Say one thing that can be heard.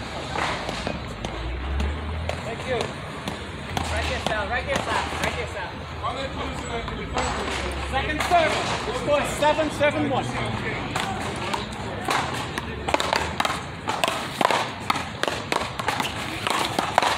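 A ball thuds off a wall with an echo.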